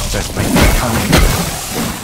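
A zombie snarls close by.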